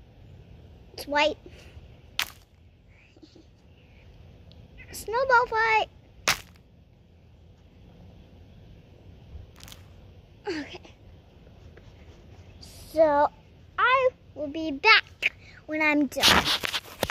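A young girl talks close by, in short bursts.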